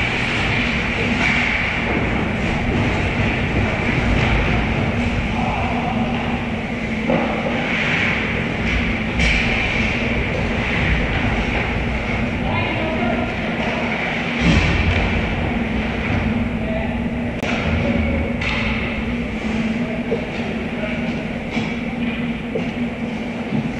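Skate blades scrape and hiss across the ice in a large echoing hall.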